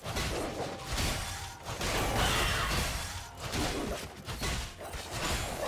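Spell blasts burst and crackle in a fast fight.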